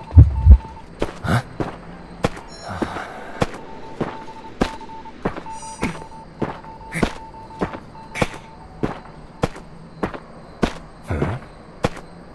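Footsteps run quickly and steadily on hard ground.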